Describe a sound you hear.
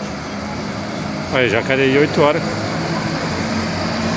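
A bus engine rumbles as the bus pulls forward nearby.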